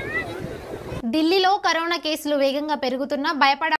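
A young woman reads out calmly through a microphone.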